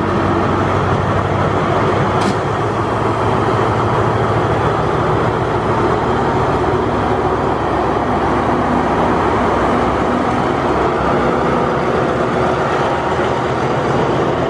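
A diesel-electric locomotive rumbles as it passes.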